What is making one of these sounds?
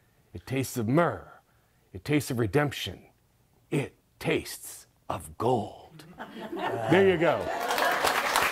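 A middle-aged man reads aloud into a microphone.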